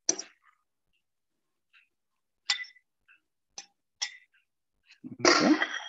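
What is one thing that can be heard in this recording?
A spoon scrapes food into a bowl.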